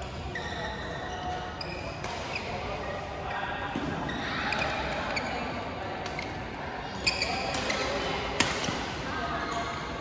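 Shoes squeak sharply on the court floor.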